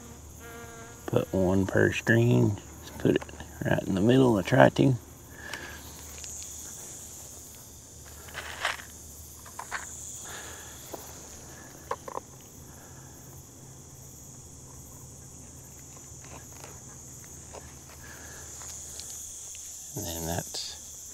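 Fabric rustles and crinkles close by.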